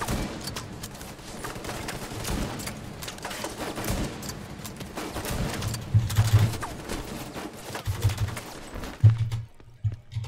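Rapid gunfire cracks and echoes in a large hall.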